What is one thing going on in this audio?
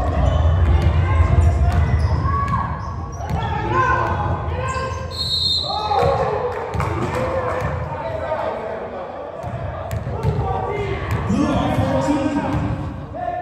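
A crowd of people talk and call out throughout a large echoing gym.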